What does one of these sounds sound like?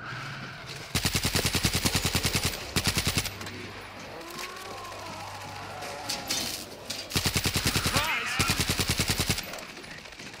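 A submachine gun fires rapid, loud bursts in a large echoing hall.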